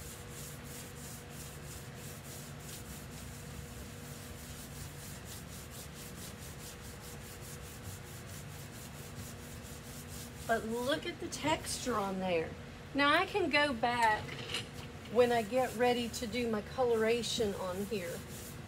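A sponge scrubs against a glass pane.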